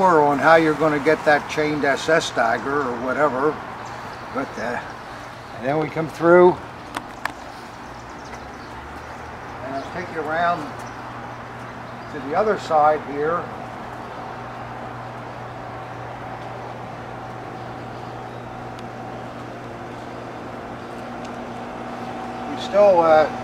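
An elderly man speaks calmly, close by, outdoors.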